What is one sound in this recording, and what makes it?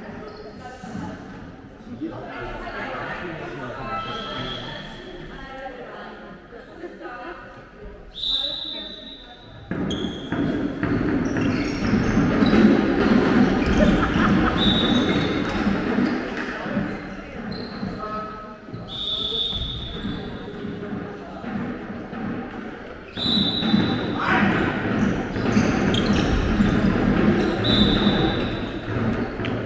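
Young players shout and call to each other in an echoing hall.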